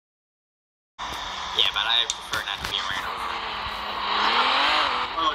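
A car engine hums and revs up.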